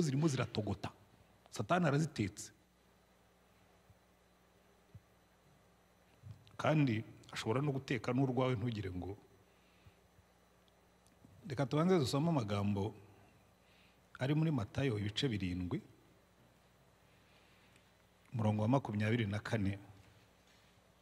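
A middle-aged man speaks calmly into a microphone in short bursts, with pauses between them.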